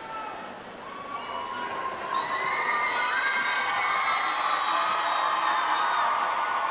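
Electric guitar notes ring out and swell with feedback.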